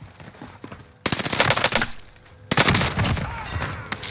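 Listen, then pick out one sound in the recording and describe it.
Gunshots crack loudly in a video game.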